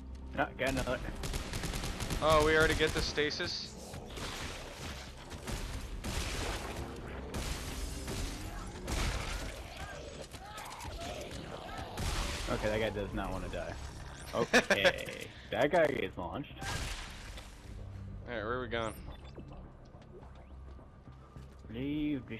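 Energy guns fire in sharp bursts.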